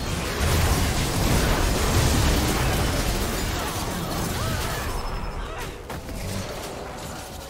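Weapons clash and thud in the fight.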